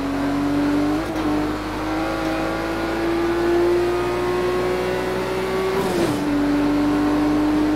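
A car engine roars steadily as it accelerates, with brief dips in pitch at gear changes.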